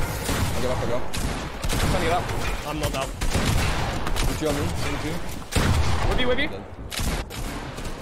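A young man talks excitedly into a microphone.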